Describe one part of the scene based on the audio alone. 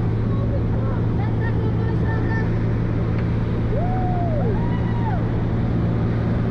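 A girl squeals and shouts over the engine.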